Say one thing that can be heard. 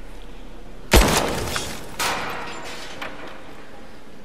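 A pistol fires a loud shot that echoes.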